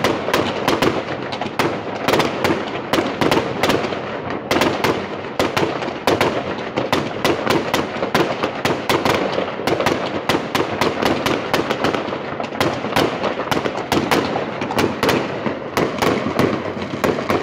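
Fireworks explode with rapid loud bangs and pops nearby.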